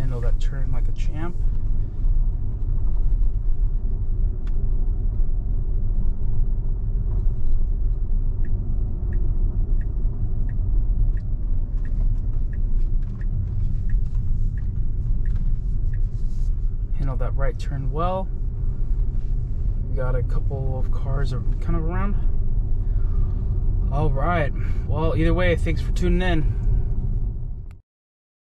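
A car's tyres rumble steadily on the road from inside the car.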